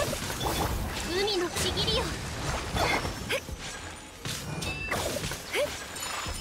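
Magical water effects swirl and splash in rushing bursts.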